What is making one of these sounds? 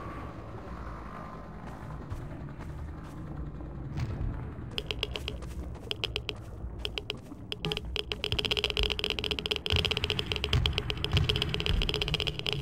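Footsteps tread on a rough, gritty floor.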